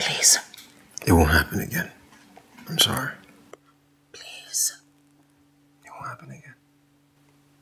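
A man speaks quietly in reply.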